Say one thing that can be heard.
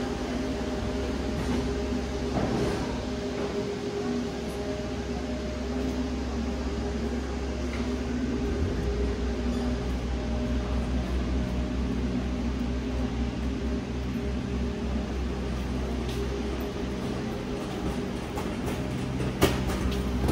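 A delivery truck's engine idles with a steady low hum.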